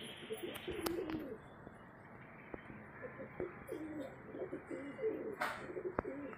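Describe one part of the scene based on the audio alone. A pigeon coos in low, rolling bursts close by.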